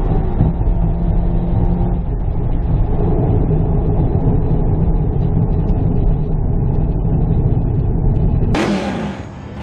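A car engine roars steadily from inside the cabin at speed.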